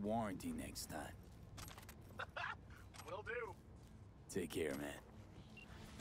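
A man speaks calmly over a call.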